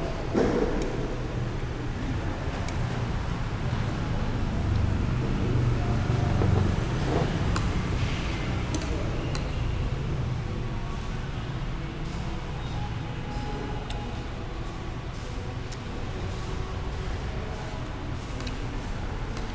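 A spoon and fork clink against a plate.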